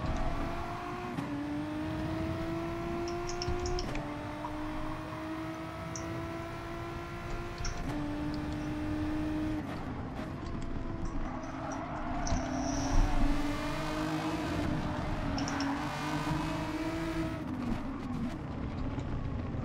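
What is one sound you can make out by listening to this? A racing car engine revs high and rises through the gears.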